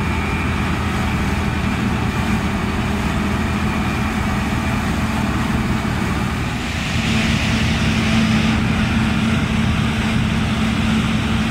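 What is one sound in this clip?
Crop rattles and hisses through a combine harvester's threshing machinery.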